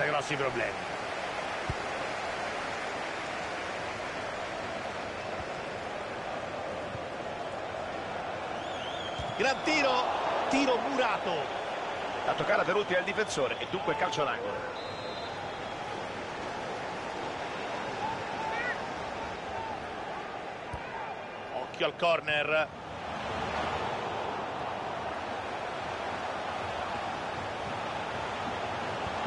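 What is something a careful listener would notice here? A stadium crowd roars steadily in the background.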